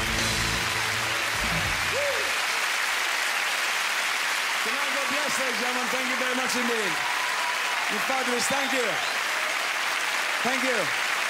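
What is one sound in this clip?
An audience applauds and cheers loudly in a large hall.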